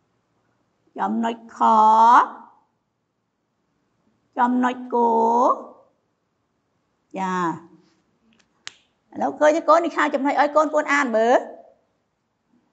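A woman speaks slowly and clearly, drawing out her words as if teaching.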